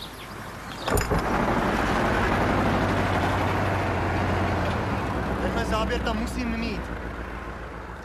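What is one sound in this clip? A tractor engine rumbles nearby.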